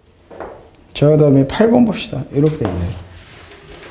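A man speaks in a clear, raised lecturing voice.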